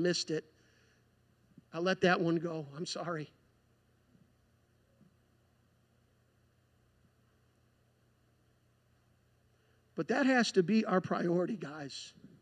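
A man speaks through a microphone in a large hall, with pauses.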